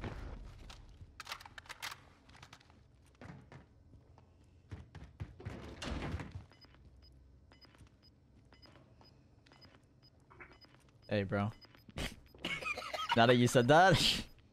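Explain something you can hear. Footsteps climb concrete stairs.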